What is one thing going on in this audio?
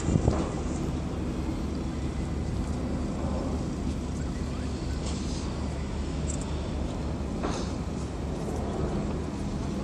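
Seagulls cry as they fly past.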